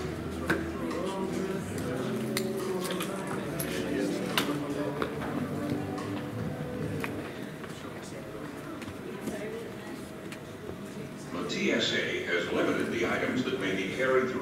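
A toddler's small feet patter across the floor.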